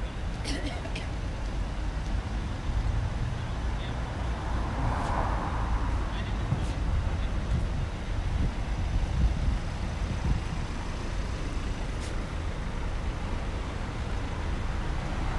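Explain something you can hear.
Car engines idle and hum in slow city traffic outdoors.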